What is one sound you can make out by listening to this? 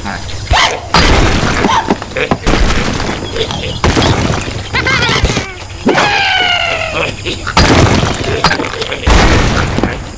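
Stone and wooden blocks crash and break apart.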